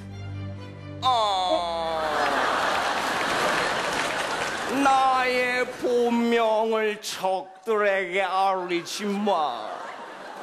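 A young man sings loudly and theatrically into a microphone.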